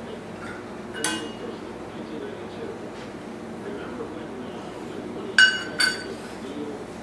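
A metal utensil clinks against a plate with a ringing sound.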